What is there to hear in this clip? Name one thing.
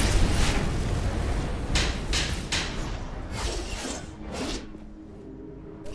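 Game weapons strike with sharp clashing hits.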